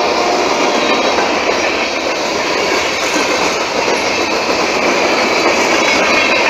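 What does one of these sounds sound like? A freight train rumbles past close by, its wheels clattering and squealing on the rails.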